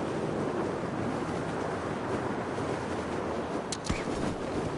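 Wind rushes steadily past a descending parachute.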